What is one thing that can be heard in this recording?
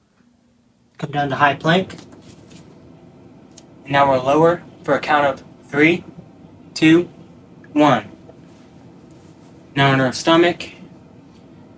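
A man speaks calmly and close by, giving instructions in short phrases.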